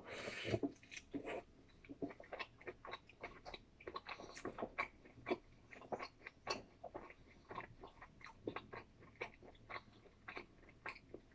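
A man chews a sandwich with wet smacking sounds close to the microphone.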